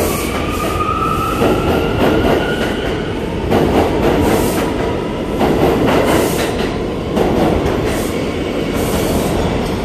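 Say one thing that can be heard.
A subway train rushes past close by with a loud rattling roar.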